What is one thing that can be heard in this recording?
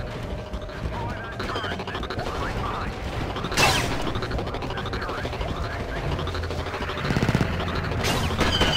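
Laser blasts zap and whine in a battle.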